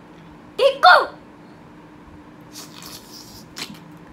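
A young child squeals and laughs close by.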